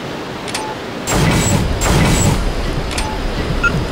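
Video game menu sounds blip and chime.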